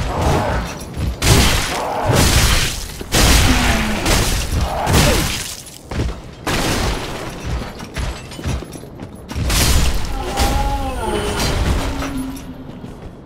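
Heavy weapons clash and thud in a fight.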